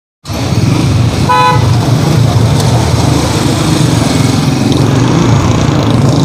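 Motorbike engines rumble in a busy street.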